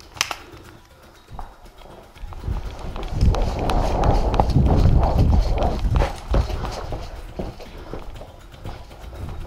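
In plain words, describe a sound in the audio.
Footsteps scuff and crunch on a gritty floor.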